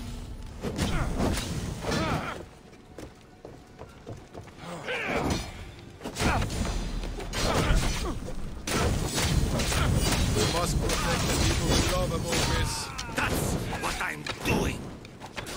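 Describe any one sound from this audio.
Flames roar and burst in a game fight.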